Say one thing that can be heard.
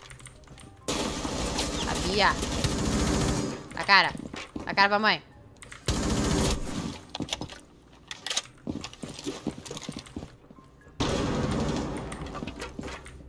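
Rifle fire rings out in loud bursts.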